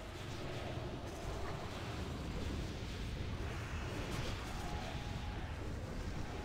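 Magic spells whoosh and crackle in a fierce battle.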